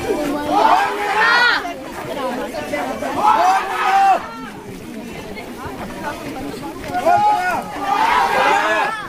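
Several young women talk and call out excitedly close by.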